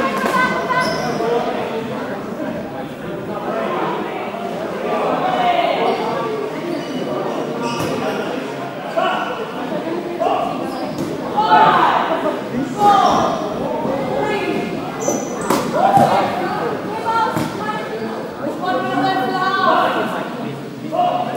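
Children shout and call out across a large echoing sports hall.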